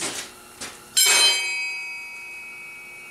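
A struck metal bar rings out and slowly fades.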